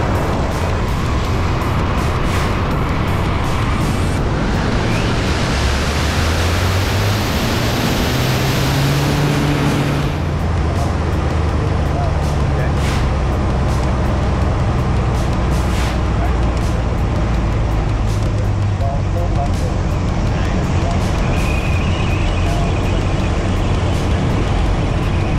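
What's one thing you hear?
Wind rushes hard past the plane.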